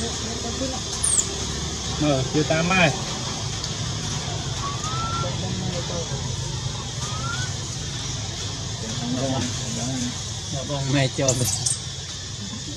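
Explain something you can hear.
A young monkey squeals softly close by.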